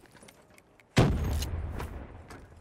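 A knife swings with a sharp whoosh.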